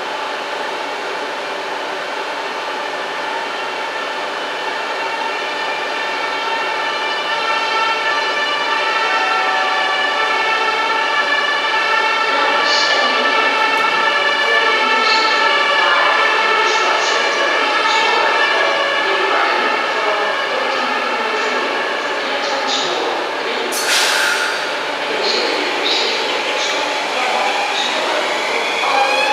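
A locomotive pulls a train into the station, its motor humming and growing louder.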